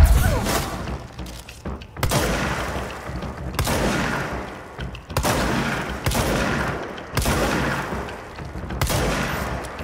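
Debris clatters and scatters after gunshots.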